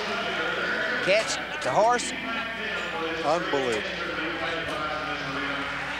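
A large crowd cheers and murmurs in a big arena.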